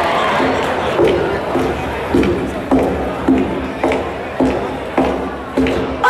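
Thumping beats join the music over loudspeakers.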